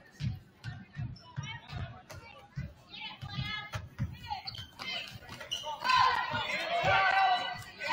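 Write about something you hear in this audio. A basketball bounces repeatedly on a hard wooden floor.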